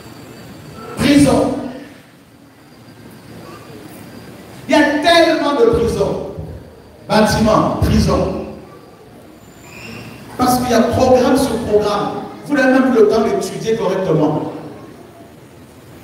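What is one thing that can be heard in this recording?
A large crowd of men and women sings together in loud bursts, echoing in a big hall.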